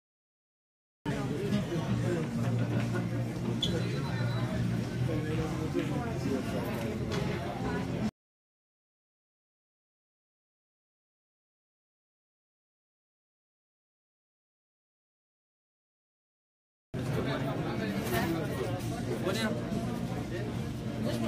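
A crowd of men chatters in a large, lively room.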